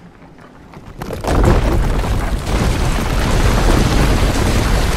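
A loud roaring rush bursts out and keeps going.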